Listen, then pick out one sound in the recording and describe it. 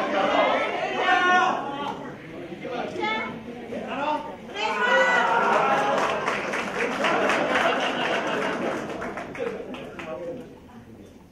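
A crowd cheers and murmurs in a large echoing hall.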